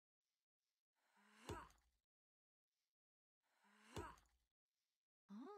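An axe thuds into a wooden stump.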